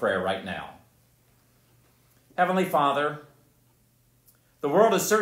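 An elderly man reads aloud calmly into a microphone, with pauses.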